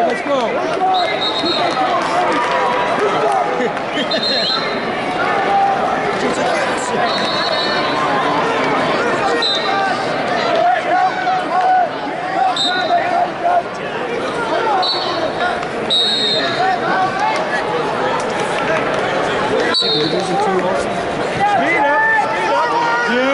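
A large crowd chatters and cheers in a big echoing arena.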